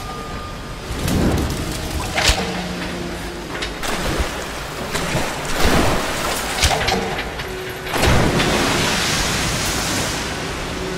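A fire bursts into flame with a loud whoosh.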